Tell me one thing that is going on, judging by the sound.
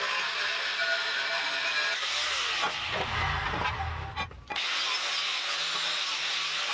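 An angle grinder whines loudly as it grinds steel.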